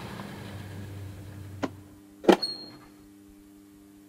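A metal washing machine lid creaks open.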